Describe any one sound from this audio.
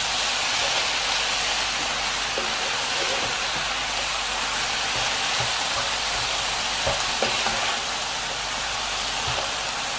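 Spatulas scrape and clack against a pan as food is tossed.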